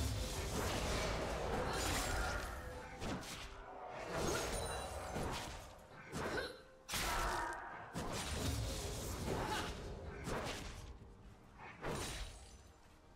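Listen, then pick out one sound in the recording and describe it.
Spell effects and hits clash and burst in a fast-paced game fight.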